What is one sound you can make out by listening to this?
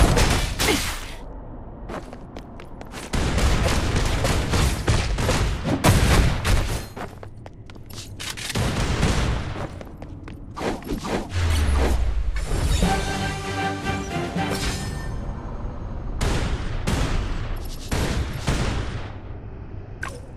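Slashing and magic blasts crash and whoosh in a fast fight.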